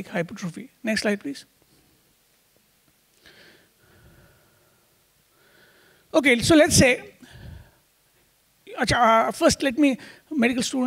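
A man speaks into a microphone, lecturing with animation.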